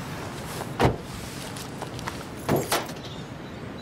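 Small objects clatter down onto a car's metal hood.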